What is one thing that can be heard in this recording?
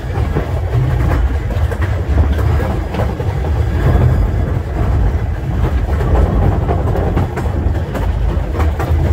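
Strong wind blusters and rumbles outdoors.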